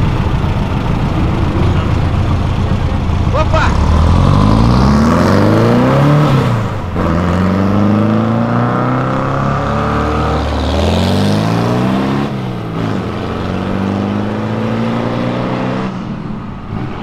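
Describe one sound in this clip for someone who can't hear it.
An old car engine revs loudly and roars away nearby.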